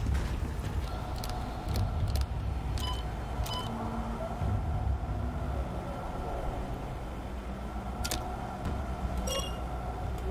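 A computer terminal beeps with short electronic tones.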